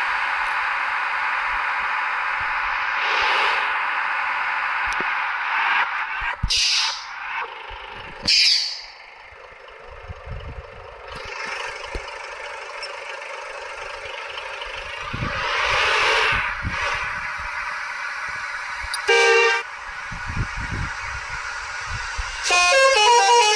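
A bus engine drones as the bus drives along a road.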